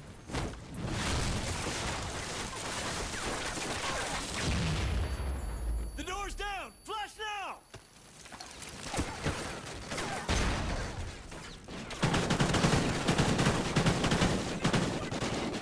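Rapid gunfire rattles loudly and echoes.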